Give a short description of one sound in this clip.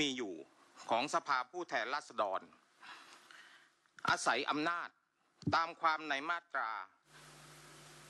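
A man reads out through a microphone in a large echoing hall.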